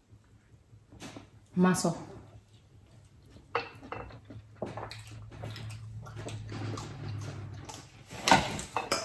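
A young woman chews food noisily with smacking sounds.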